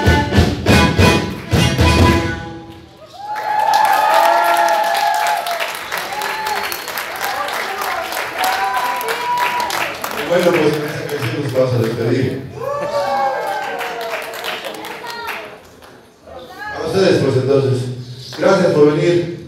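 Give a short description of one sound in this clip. A rock band plays loudly through speakers in an echoing hall.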